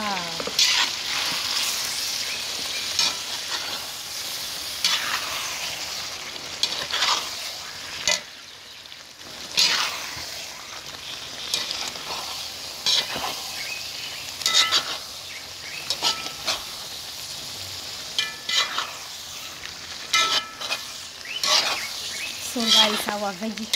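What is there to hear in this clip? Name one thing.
A metal spatula scrapes and clinks against a pot.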